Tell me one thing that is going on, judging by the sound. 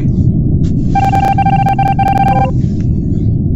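A video game plays a steady electronic tone.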